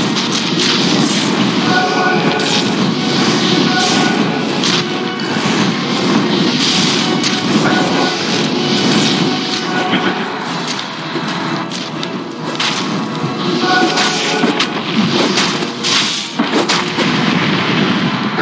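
Fire spells burst with roaring blasts.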